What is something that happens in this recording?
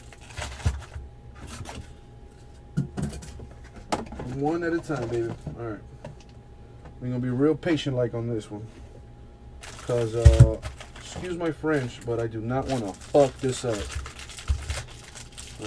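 Cardboard packs rustle and tap as they are handled.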